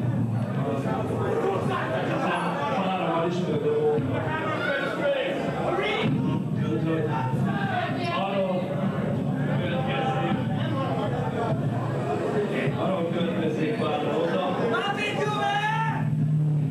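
An electric guitar plays loud distorted chords.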